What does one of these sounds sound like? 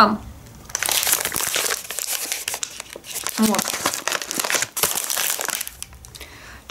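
A paper bag crinkles and rustles close by.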